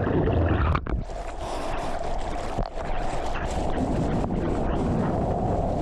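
Water splashes and sprays against a surfboard.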